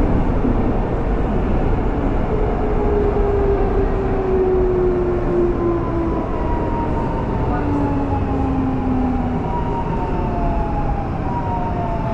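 A metro train rumbles steadily along the tracks.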